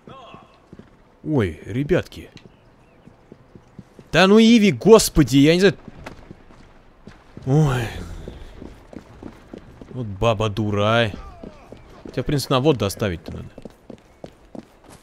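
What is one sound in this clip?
Footsteps fall on cobblestones.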